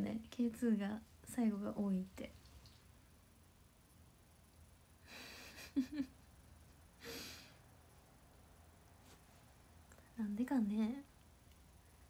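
A young woman talks softly and playfully close to a microphone.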